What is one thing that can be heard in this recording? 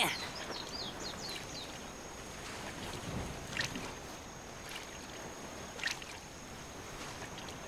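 Water laps and splashes softly.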